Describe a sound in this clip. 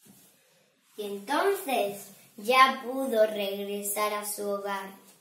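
A young girl sings close by in a high voice.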